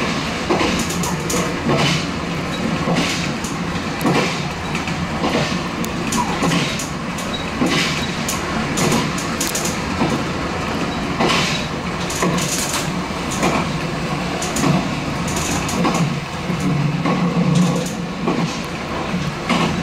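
Rain patters on the train's windscreen.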